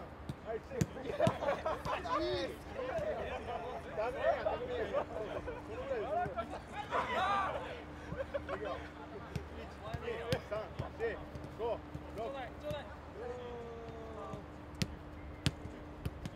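Soccer balls are kicked on grass with dull thuds.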